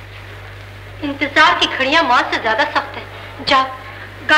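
A woman speaks with emotion.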